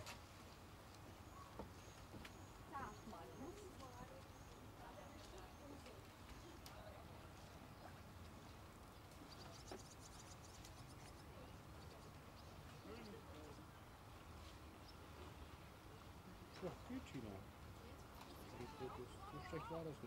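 Kayak paddles splash rhythmically in calm water.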